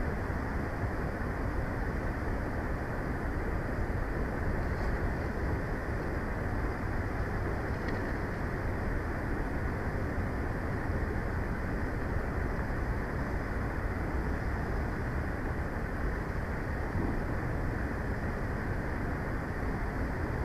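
Wind blows steadily and roughly outdoors.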